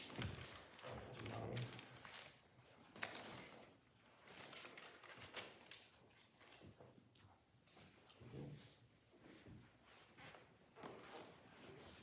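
A young girl speaks softly.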